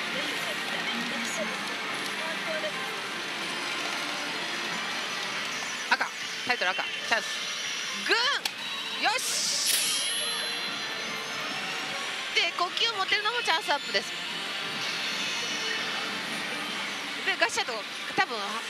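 A pachinko machine plays jingling music and effects.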